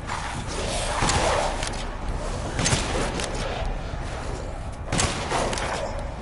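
A shotgun fires several loud blasts that echo.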